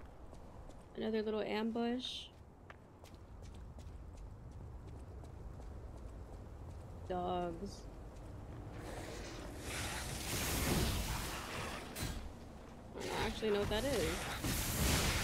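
A young woman talks into a microphone.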